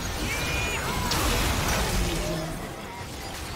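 A structure explodes with a deep boom.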